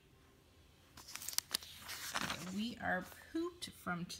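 Glossy paper pages rustle and flip.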